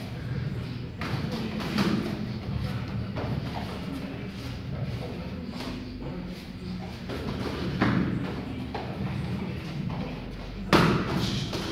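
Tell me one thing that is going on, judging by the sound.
Shin kicks thud against pads.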